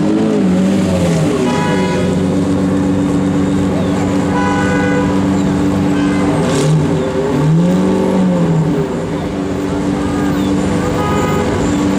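A V12 sports car engine idles with a deep burble.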